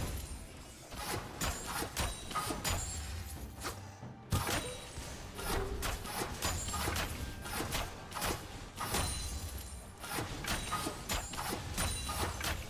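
Magic blasts and hits crackle and burst in a fast fight.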